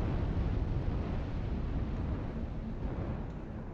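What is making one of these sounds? A large fire roars.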